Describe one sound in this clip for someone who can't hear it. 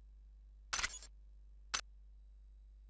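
A game menu blips twice as an option is picked.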